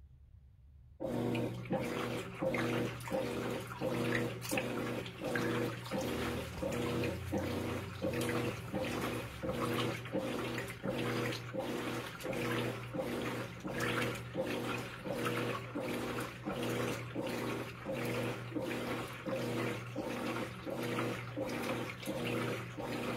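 A washing machine agitator churns back and forth in a steady rhythm.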